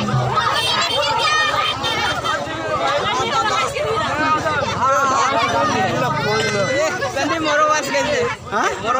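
A crowd of young men and boys chatter and shout loudly close by, outdoors.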